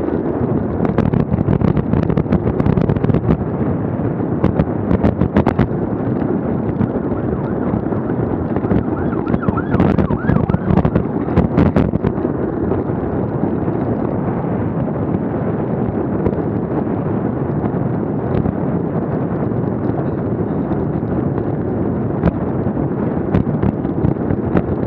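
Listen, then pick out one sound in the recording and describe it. Bicycle tyres hum steadily on a road.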